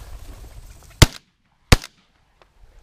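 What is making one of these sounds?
A shotgun fires two shots outdoors in the open.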